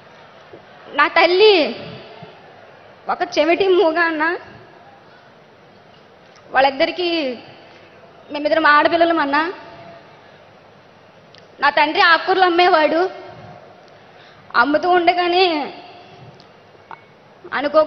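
A girl speaks in short bursts through a microphone and loudspeakers, with pauses between phrases.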